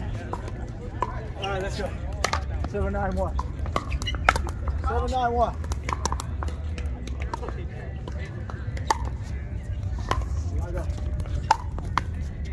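Pickleball paddles smack a plastic ball back and forth outdoors.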